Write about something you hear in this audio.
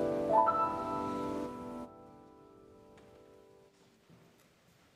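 A congregation sings a final held note that fades away in a large echoing hall.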